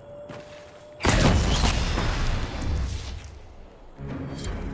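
A loud magical blast roars and crackles.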